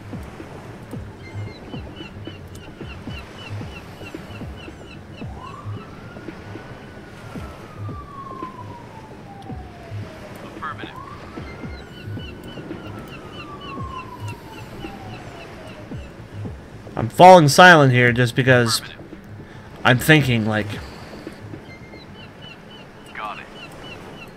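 Waves wash gently against a shore.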